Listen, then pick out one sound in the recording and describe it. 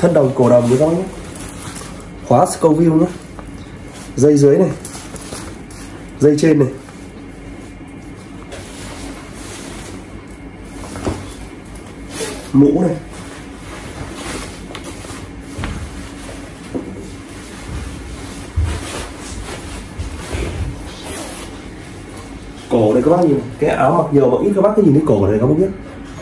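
Stiff fabric rustles as it is handled.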